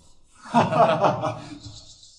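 A man invites others to sit.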